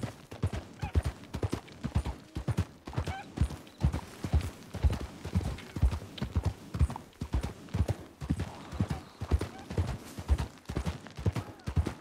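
Horse hooves thud rhythmically at a gallop.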